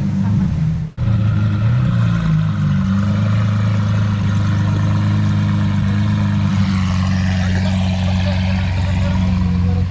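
A sports car engine idles with a deep, steady rumble close by.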